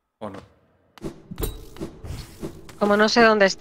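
Sharp sword slashes and impact hits ring out in quick succession.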